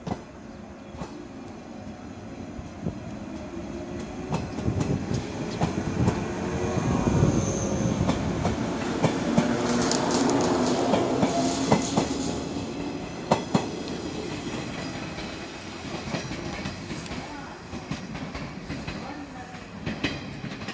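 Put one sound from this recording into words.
An electric train rumbles past close by, growing louder and then fading.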